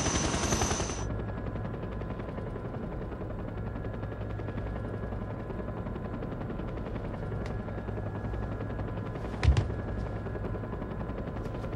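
A low engine hum drones steadily.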